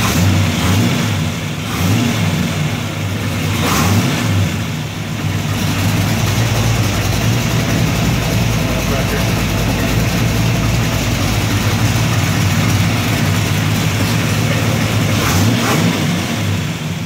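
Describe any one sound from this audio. A large engine revs up sharply in short bursts.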